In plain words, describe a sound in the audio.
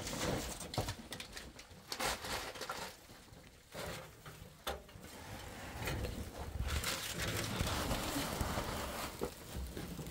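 Metal pots clink and clatter.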